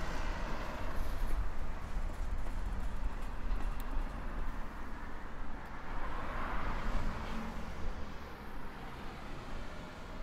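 Cars pass by on a road nearby.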